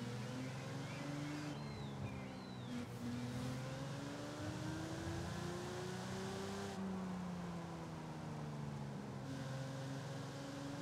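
Tyres roll over asphalt.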